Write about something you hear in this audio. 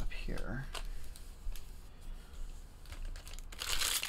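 Stacks of cards shuffle and tap together.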